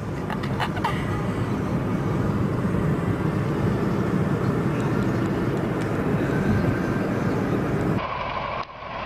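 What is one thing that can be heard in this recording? Traffic rumbles steadily on a fast road.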